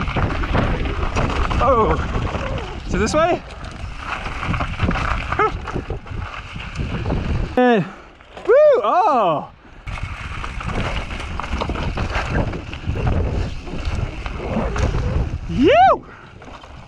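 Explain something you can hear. Bicycle tyres rumble and crunch over dirt and rock.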